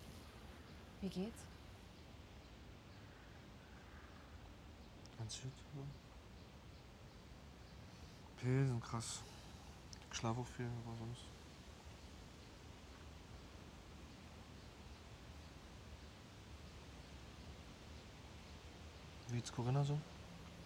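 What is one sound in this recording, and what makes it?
A woman speaks calmly and quietly nearby.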